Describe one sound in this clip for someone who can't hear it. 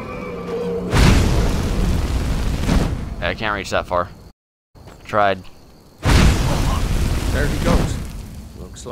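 A fire spell roars and crackles in loud bursts.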